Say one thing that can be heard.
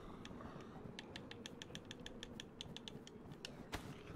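Menu clicks tick quickly in a row.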